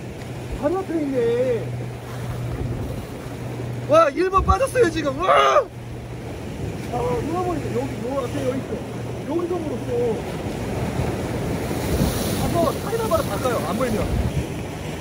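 Adult men talk casually nearby outdoors.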